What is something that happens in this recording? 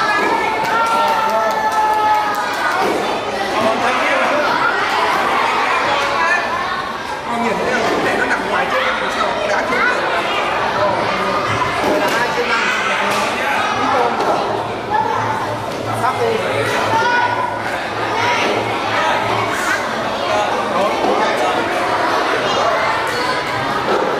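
Many children and adults chatter and call out at once in a noisy, echoing room.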